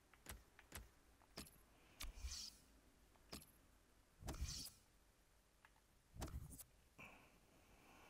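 Short electronic menu clicks and whooshes sound at intervals.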